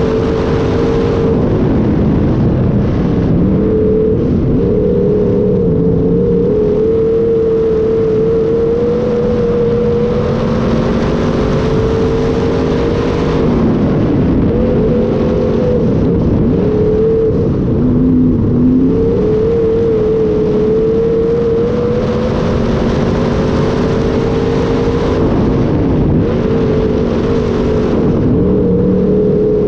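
A race car engine roars loudly up close, its pitch rising and falling.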